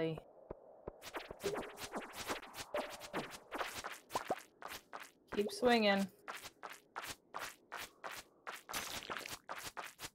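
A sword swishes and hits slimes with quick, sharp squelches.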